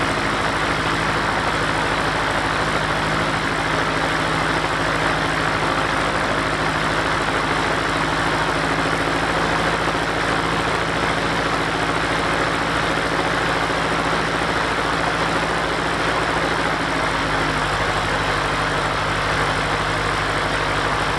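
A small propeller plane's engine drones loudly and steadily up close.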